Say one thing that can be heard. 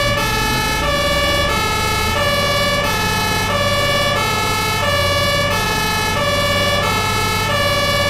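A van engine hums as the van rolls down a ramp.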